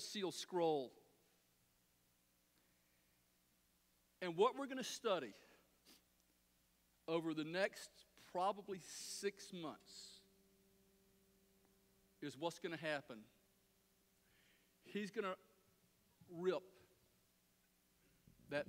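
A middle-aged man speaks with animation through a microphone in a large room, in short bursts with pauses.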